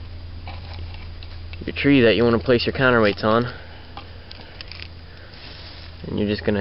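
Dry branches rustle and creak as hands handle them.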